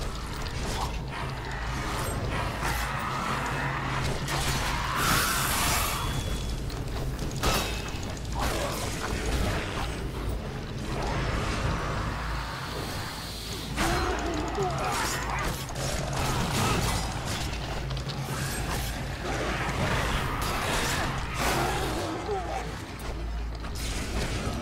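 Blades slash and strike repeatedly in a fight.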